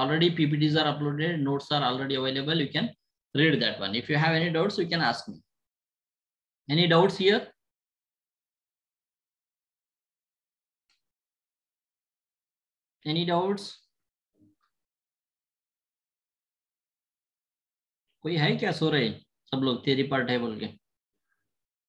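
A man speaks calmly into a microphone, explaining with pauses.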